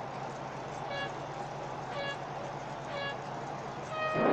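A starting signal beeps several times at even intervals, the last beep higher.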